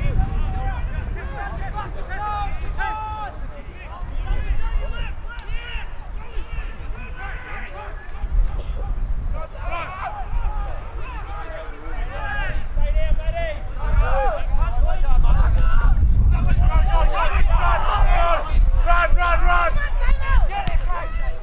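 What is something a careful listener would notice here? Young men shout and call to each other across an open field.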